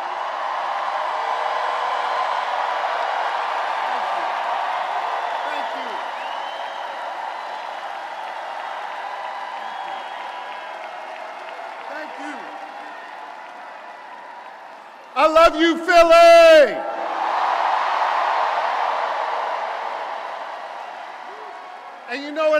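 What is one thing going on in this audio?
A large crowd cheers and applauds in a big echoing hall.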